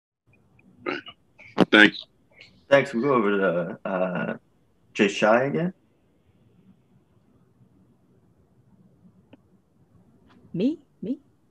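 A man speaks calmly into a microphone, heard over an online call.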